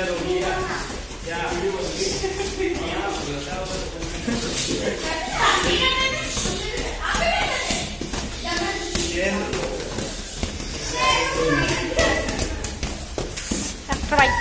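Boxing gloves thump against a body in quick blows.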